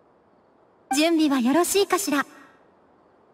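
A young woman asks a short question calmly.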